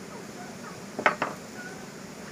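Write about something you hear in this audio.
Metal parts click as hands work on a small two-stroke engine.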